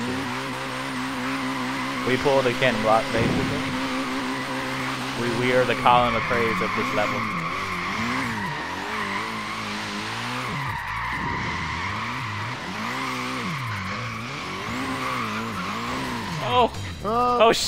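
A car engine revs up and down hard.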